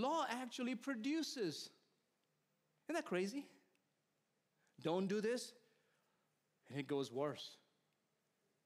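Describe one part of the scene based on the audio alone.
A middle-aged man preaches into a microphone with animation, in short phrases with pauses.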